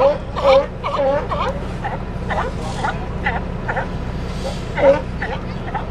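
Sea lions bark loudly and repeatedly close by.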